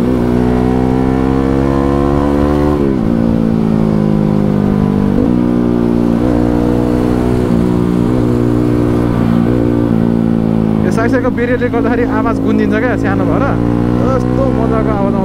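A motorcycle engine hums steadily, dropping and rising in pitch as gears change.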